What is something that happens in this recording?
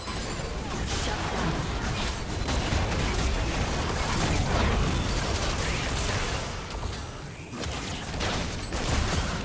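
Magic spells burst and crackle in a fast fight.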